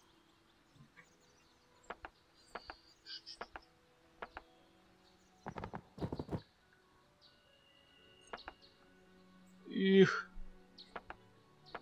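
Short game interface clicks sound as menus open and close.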